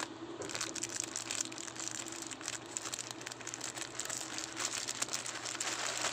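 Plastic wrapping crinkles and rustles under a hand.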